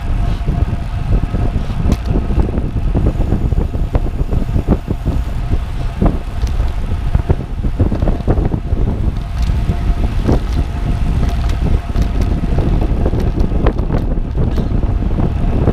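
A bicycle chain whirs with a faint steady tone.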